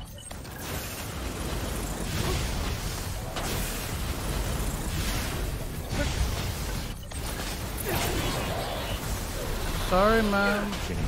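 Magic blasts and explosions boom and crackle in rapid bursts.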